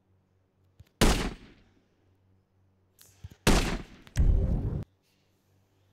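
A rifle fires loud shots.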